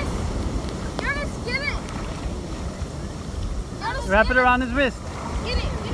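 A young boy calls out excitedly over the surf.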